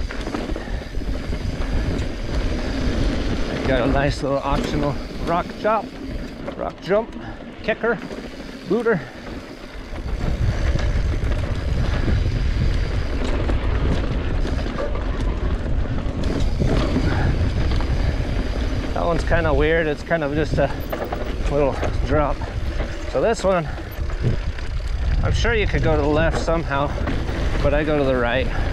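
Bicycle tyres crunch and roll over a dirt trail.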